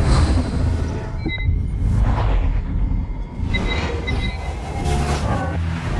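A heart monitor beeps.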